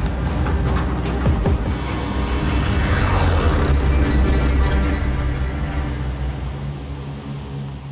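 Wind rushes loudly past and slowly fades.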